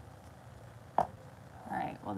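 A wooden board is set down on a table with a soft knock.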